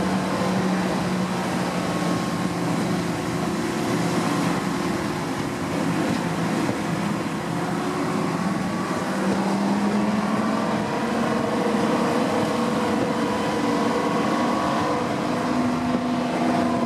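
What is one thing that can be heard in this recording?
Wind rushes past an open carriage window.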